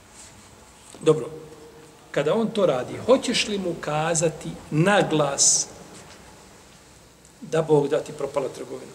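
A man speaks calmly into a nearby microphone, with pauses.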